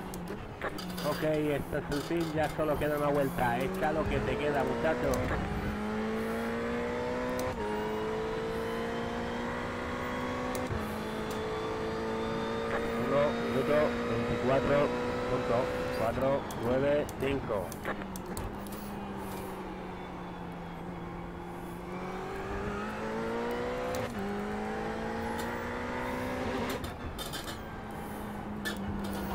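A race car engine drones and rises in pitch, dropping sharply with each gear change.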